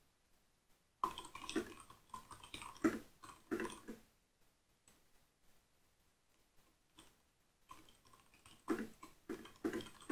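Keys on a keyboard click softly as someone types.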